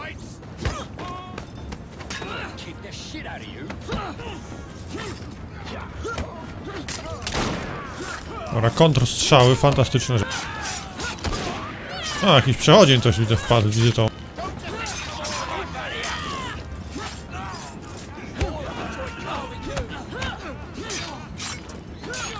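Swords clash and blows land in a fight.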